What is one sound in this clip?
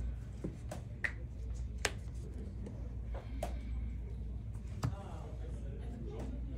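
Cards tap and slide on a cloth mat.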